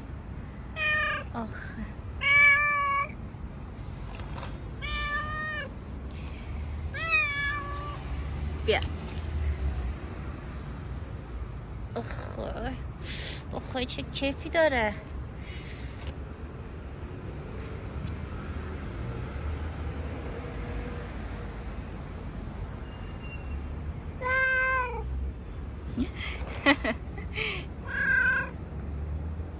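A cat meows loudly and repeatedly up close.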